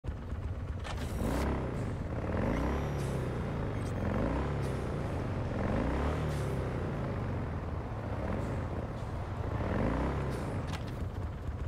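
A motorcycle engine rumbles and revs up and down as it rides along.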